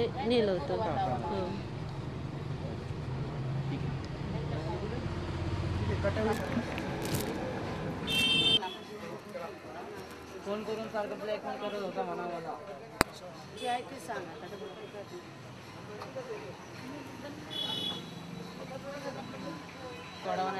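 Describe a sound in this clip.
A young woman speaks quietly and haltingly into close microphones.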